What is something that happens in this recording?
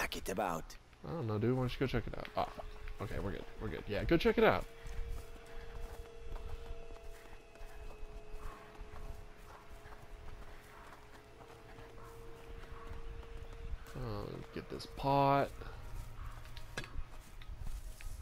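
Footsteps patter quickly along a dirt path.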